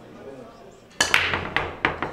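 A cue ball smashes into a rack of billiard balls with a sharp crack.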